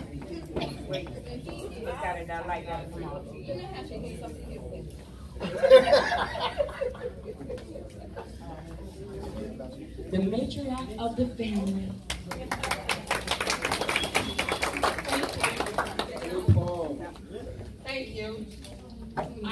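A woman speaks with animation into a microphone over loudspeakers.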